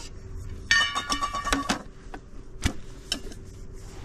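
A plastic lid clicks and scrapes as it is twisted open.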